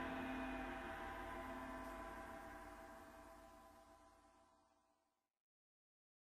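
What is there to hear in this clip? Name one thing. A cymbal rings out and slowly fades away.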